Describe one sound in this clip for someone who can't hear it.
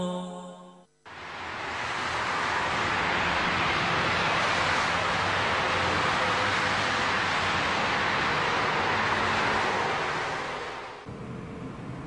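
Traffic rushes steadily along a busy road.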